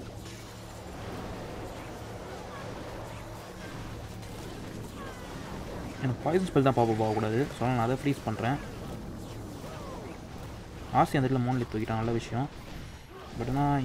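Game battle sounds crackle and thud in the background.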